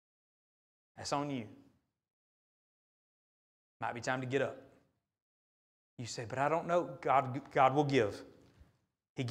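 A middle-aged man speaks slowly and calmly into a microphone in a large echoing hall, pausing between phrases.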